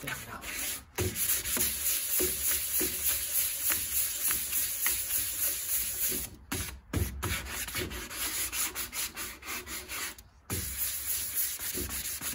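Sandpaper rubs rapidly back and forth on wood.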